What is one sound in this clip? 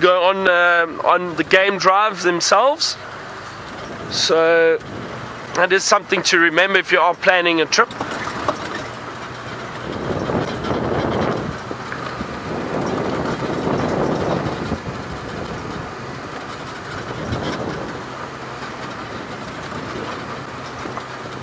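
A vehicle engine rumbles while driving over a bumpy dirt track.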